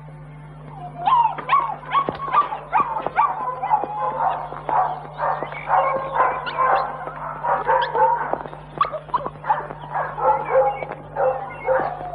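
Dogs bark loudly and excitedly close by.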